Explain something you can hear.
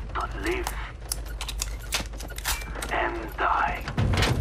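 A pistol's metal parts click and clack as it is handled.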